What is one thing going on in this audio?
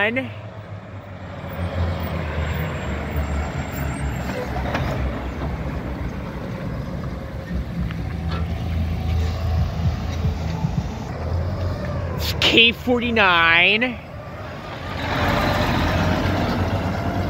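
A heavy truck engine rumbles loudly as it drives past.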